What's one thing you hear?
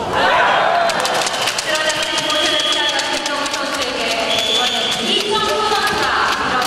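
A crowd of spectators cheers and shouts in a large echoing arena.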